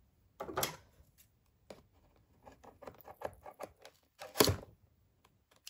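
Scissors snip through cardboard.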